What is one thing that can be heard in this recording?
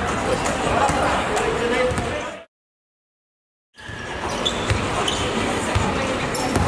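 Basketball sneakers squeak on a hardwood court in a large echoing hall.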